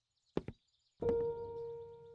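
A piano note rings out and slowly fades.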